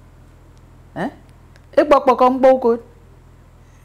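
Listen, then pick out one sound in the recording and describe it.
A young woman answers calmly and softly, close by.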